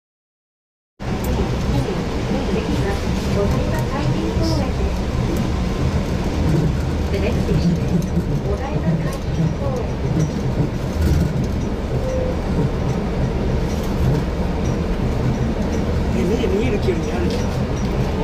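A monorail train rumbles steadily along its track.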